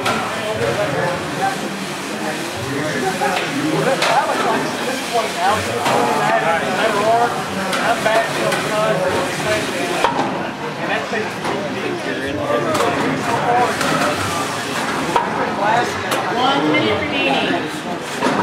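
Small robot motors whir as the machines drive across a hard floor.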